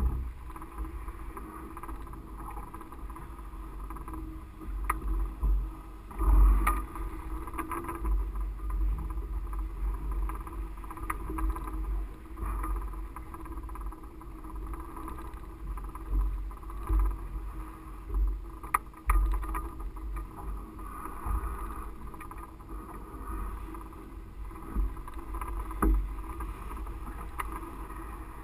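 A paraglider's fabric flutters and rustles in the wind.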